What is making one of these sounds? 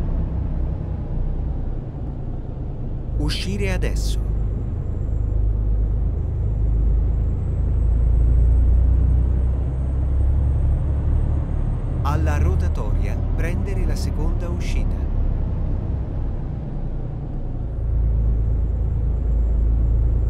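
A truck engine rumbles steadily at low pitch.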